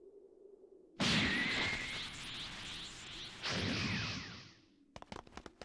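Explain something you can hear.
A loud energy blast whooshes and roars.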